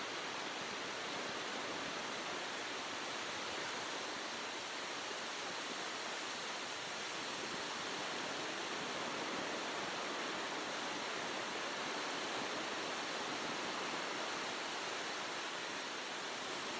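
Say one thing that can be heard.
Ocean waves wash steadily onto a beach.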